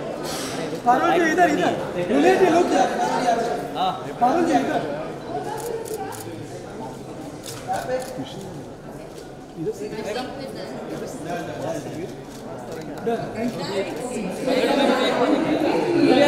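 A woman talks cheerfully nearby.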